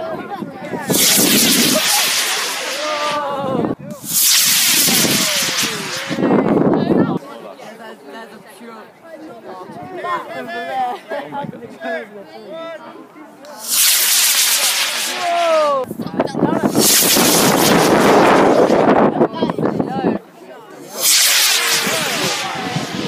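A small model rocket roars and whooshes up into the sky.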